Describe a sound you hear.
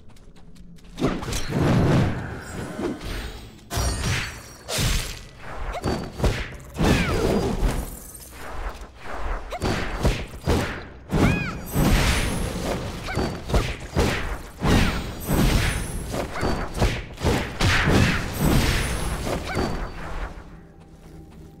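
Blades slash and strike in a fast, loud fight.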